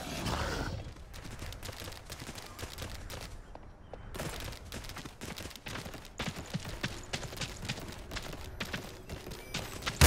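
Paws patter quickly across the ground.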